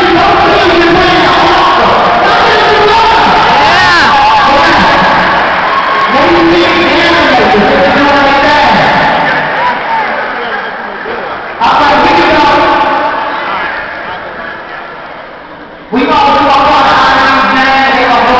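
A crowd chatters loudly in a large echoing gym.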